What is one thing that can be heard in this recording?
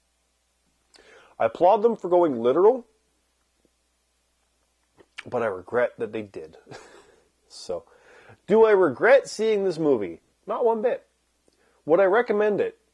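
A man talks calmly and thoughtfully, close to a microphone, with pauses.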